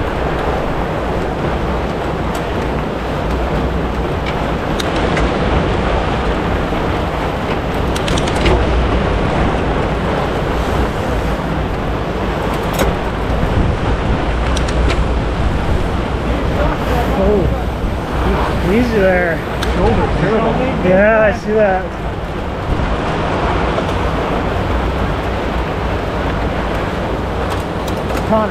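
Bicycle tyres crunch and hum over packed snow.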